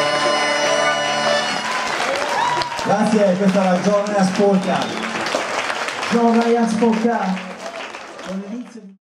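A fiddle plays a lively melody.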